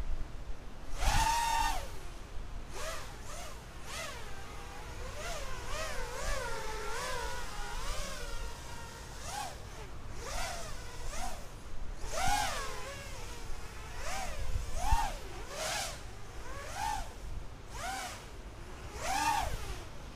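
Birds chirp and sing outdoors.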